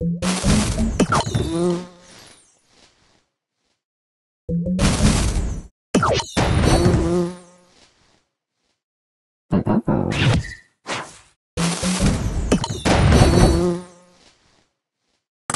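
Cartoon game pieces burst with crackling, chiming effects.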